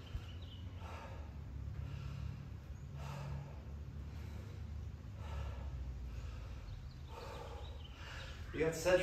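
A woman exhales sharply with each effort.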